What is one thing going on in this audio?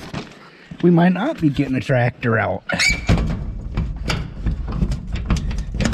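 A metal latch clicks and rattles as a hand works it.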